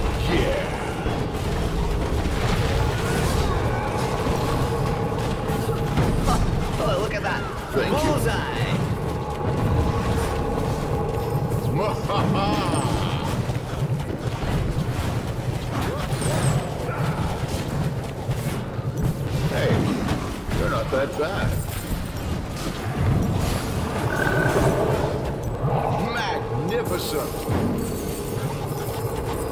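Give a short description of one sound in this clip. Spell blasts and explosions crackle and boom in a fight.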